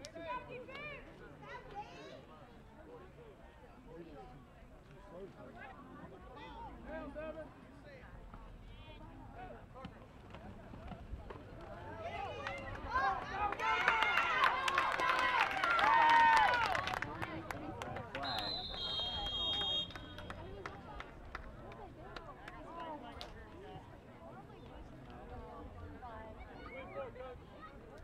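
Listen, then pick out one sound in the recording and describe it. A crowd of spectators chatters outdoors in the distance.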